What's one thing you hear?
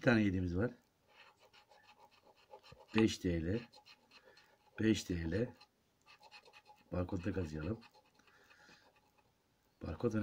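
A coin scratches briskly across a card.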